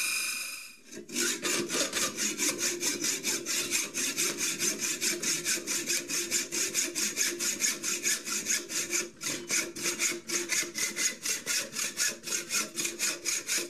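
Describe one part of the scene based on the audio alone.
A hacksaw rasps back and forth through metal in quick, even strokes.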